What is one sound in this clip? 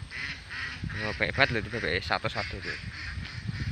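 Birds chirp and call outdoors.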